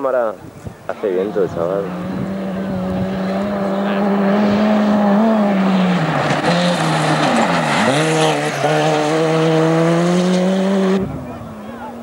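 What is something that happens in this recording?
A rally car engine roars loudly and revs up and down.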